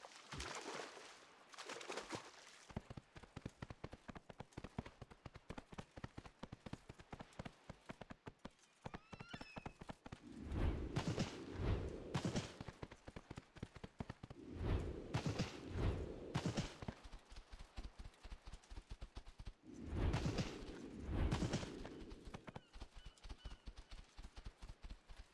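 A large animal's paws thud quickly and steadily as it runs.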